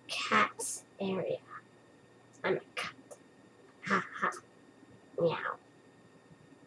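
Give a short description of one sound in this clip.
A cartoon voice speaks playfully up close.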